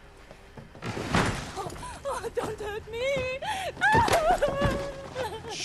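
A young woman wails loudly in distress.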